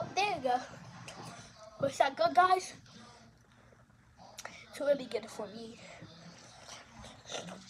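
A young girl speaks with animation close to the microphone.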